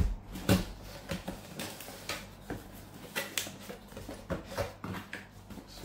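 Cardboard flaps rustle and scrape as a box is opened by hand.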